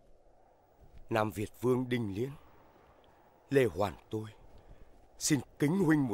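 A man speaks calmly and slowly.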